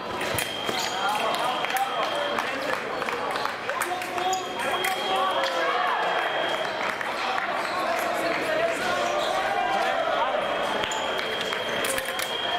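Fencing blades clash and click.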